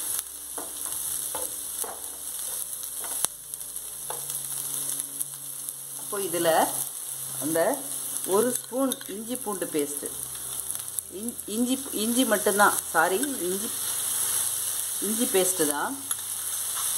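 Onions sizzle steadily in a hot pan.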